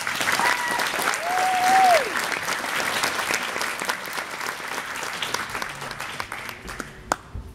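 A crowd of spectators claps and cheers in a large echoing hall.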